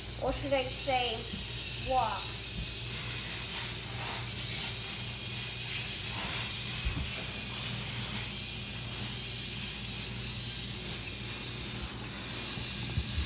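Plastic feet tap on a hard tile floor.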